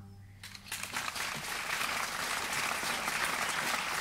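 A small string ensemble plays.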